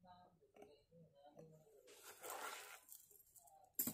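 Beads clink softly as a necklace is lifted off a display stand.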